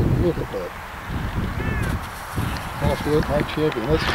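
A model glider skids across grass as it lands.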